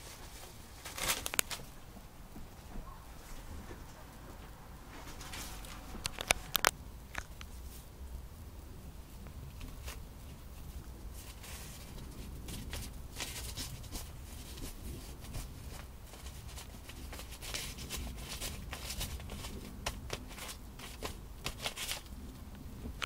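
Newspaper rustles and crinkles as a rabbit tosses and nudges it.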